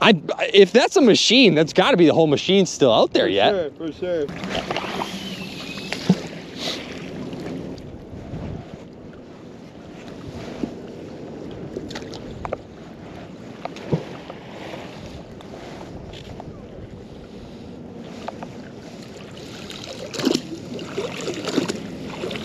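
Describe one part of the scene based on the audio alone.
Water laps gently against a rocky shore.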